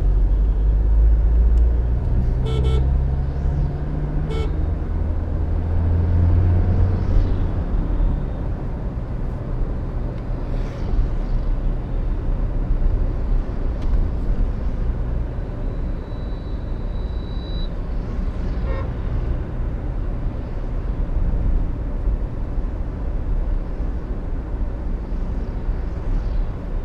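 Tyres roll on asphalt with a steady rush.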